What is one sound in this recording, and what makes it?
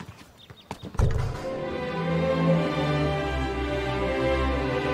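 An orchestra plays music.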